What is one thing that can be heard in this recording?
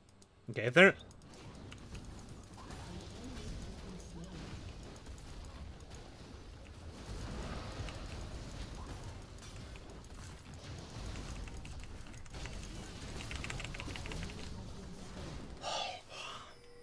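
Game combat effects clash and whoosh loudly.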